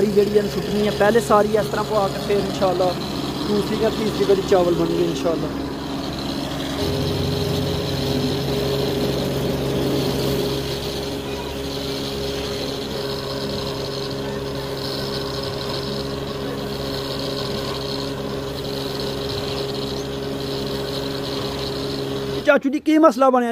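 A grain machine hums steadily.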